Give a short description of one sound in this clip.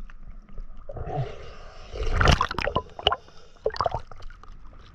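Water splashes briefly as a swimmer dips under and comes back up.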